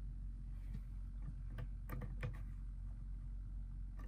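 A switch clicks on a battery lantern.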